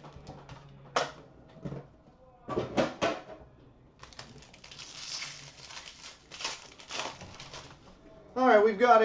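A foil card pack crinkles and tears as hands open it.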